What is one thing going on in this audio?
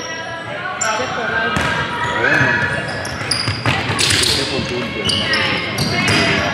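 Young girls call out to each other across an echoing gym.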